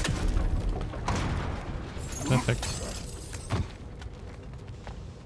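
Heavy footsteps thud on wooden boards and rock.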